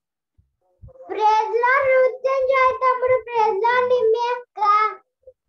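A young girl sings through an online call.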